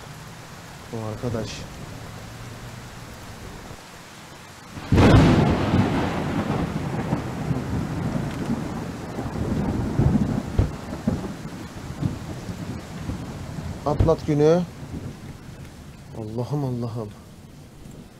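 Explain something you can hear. A young man speaks briefly and casually into a close microphone.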